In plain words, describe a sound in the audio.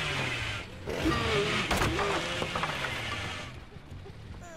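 Wooden planks crack and splinter as they are smashed.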